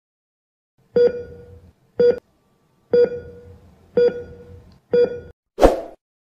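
A heart monitor beeps at a steady pace.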